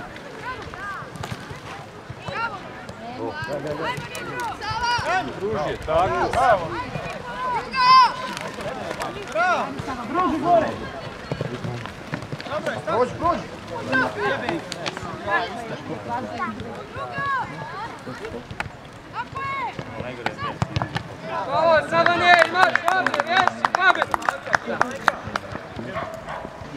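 Young players shout and call to each other across an open field outdoors.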